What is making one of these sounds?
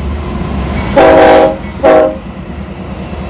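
A locomotive horn blares in two short loud blasts.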